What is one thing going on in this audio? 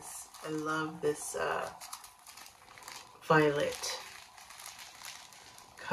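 Plastic bags crinkle and rustle in someone's hands.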